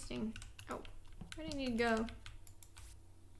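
A young girl speaks with animation close to a microphone.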